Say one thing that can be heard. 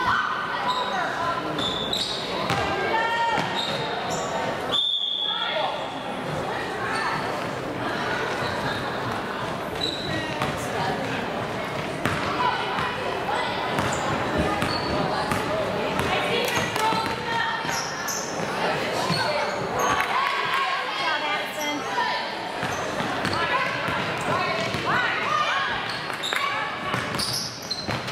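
Sneakers squeak sharply on a hard court in an echoing gym.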